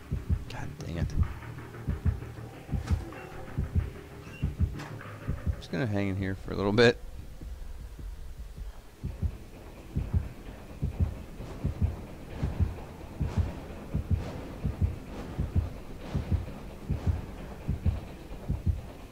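Footsteps thud steadily on the ground.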